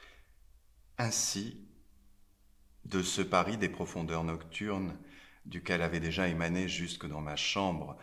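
A man reads aloud calmly, close to a microphone.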